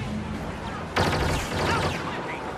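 An explosion bursts with a loud crackle.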